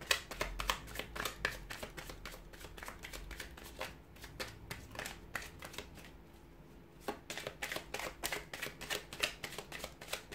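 Playing cards riffle and click as they are shuffled by hand.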